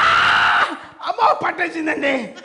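A man laughs heartily up close.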